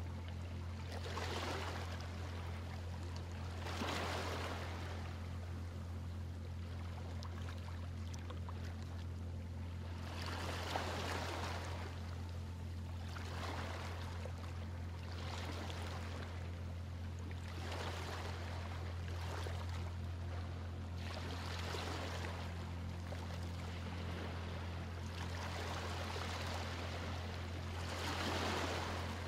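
Small waves lap gently onto a shore again and again.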